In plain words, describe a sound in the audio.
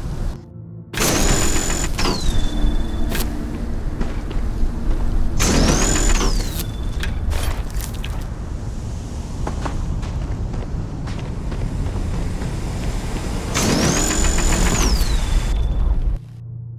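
A mining laser whines up to a high pitch and crackles in short bursts.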